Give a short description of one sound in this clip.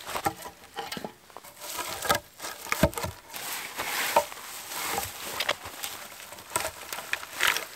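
Spruce branches rustle and scrape as they are dragged over the ground.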